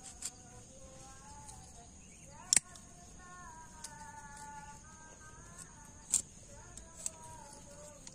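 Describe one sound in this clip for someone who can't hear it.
Pruning shears snap shut with sharp clicks.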